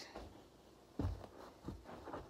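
A shoe thumps down softly on carpet.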